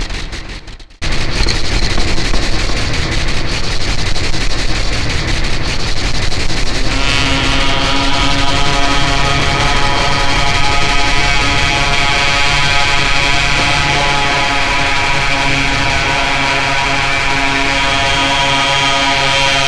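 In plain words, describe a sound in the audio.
A man makes rhythmic mouth sounds into a microphone, heavily processed by effects.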